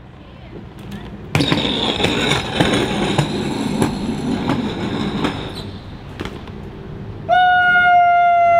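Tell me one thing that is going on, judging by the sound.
A bicycle's tyres thud as the bike hops and lands on pavement.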